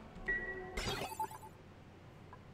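Short electronic blips and chimes play.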